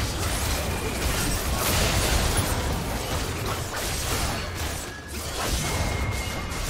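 Magic spells crackle and whoosh in a battle.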